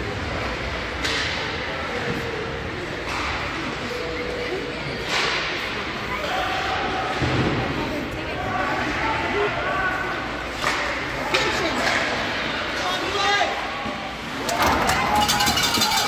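Hockey sticks clack against the puck.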